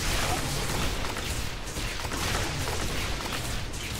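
Fiery blasts whoosh and explode.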